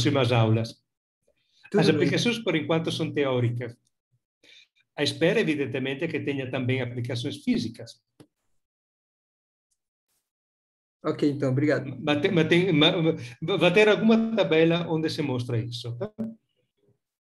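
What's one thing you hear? A man speaks calmly through an online call, pausing between phrases.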